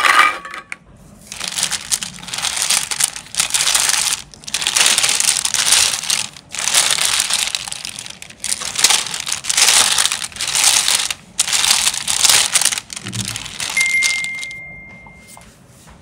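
Plastic building pieces rattle and clatter as a hand rummages through them.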